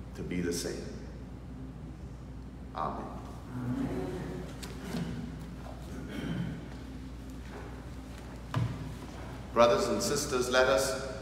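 A man speaks calmly nearby in a slightly echoing room.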